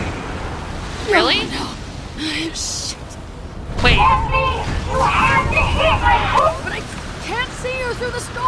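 A young woman speaks urgently, close up.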